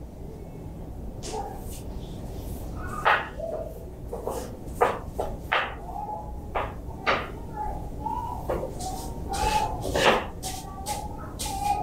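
A broom sweeps across a tiled floor with soft scraping.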